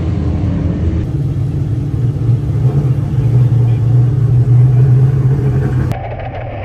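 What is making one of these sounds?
A race car engine idles with a low, steady rumble.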